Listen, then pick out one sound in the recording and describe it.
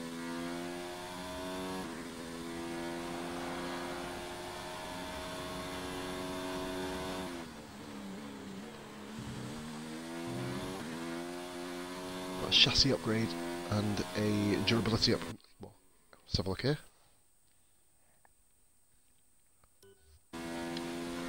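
A racing car engine screams at high revs, shifting gears as it slows and speeds up.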